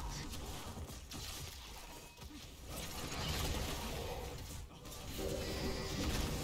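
Spells and weapon hits crackle and clash in a video game battle.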